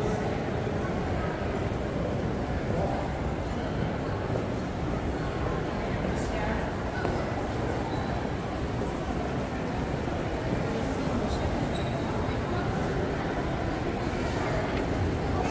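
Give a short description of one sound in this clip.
Many people murmur in a large echoing hall.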